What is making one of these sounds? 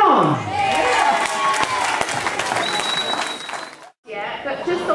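A crowd claps and cheers in a lively room.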